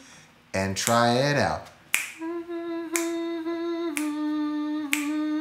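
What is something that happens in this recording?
A young man sings and vocalizes with animation into a nearby microphone.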